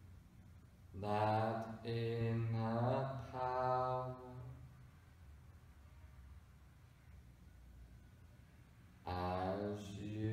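A man speaks in a slow, soothing voice close by.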